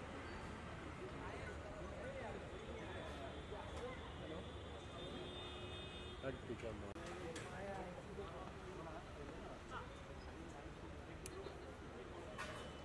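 A crowd of men and women chatters around nearby.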